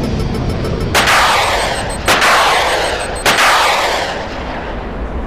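Missiles launch one after another with loud roaring whooshes.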